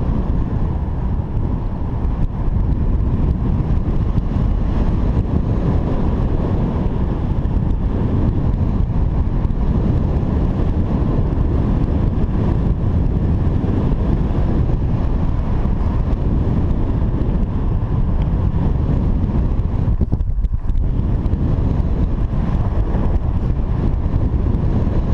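Strong wind rushes and buffets loudly against the microphone.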